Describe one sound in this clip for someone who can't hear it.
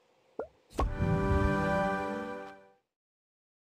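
A cheerful game jingle plays.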